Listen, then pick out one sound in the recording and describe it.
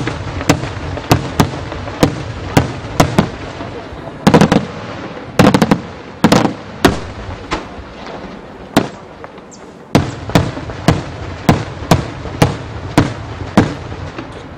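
Fireworks burst with sharp, rapid bangs overhead.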